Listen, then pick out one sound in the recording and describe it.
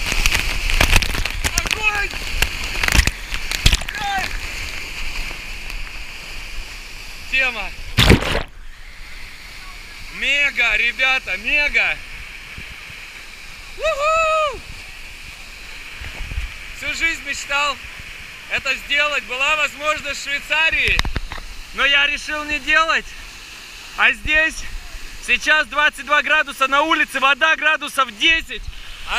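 Water rushes and pounds loudly close by.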